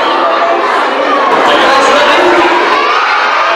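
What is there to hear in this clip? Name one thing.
Children chatter and call out in a crowded room.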